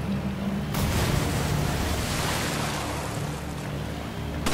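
Water rushes and splashes down.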